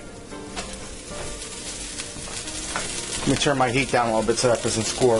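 Butter sizzles and crackles softly in a hot pan.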